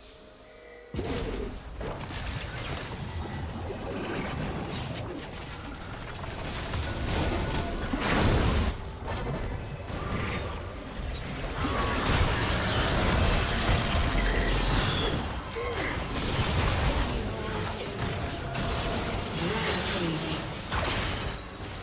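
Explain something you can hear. Magic blasts and clashing weapons crackle and boom in a busy fight.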